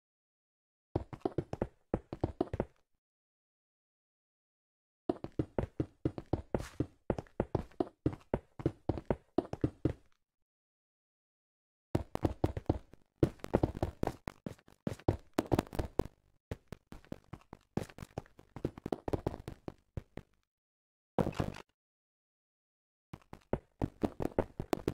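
Stone blocks are set down in quick bursts of short, dull knocks.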